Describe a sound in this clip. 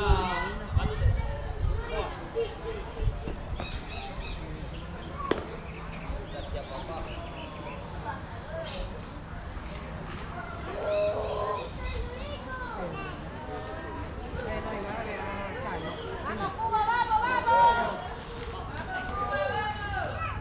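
Young men call out and chatter across an open field.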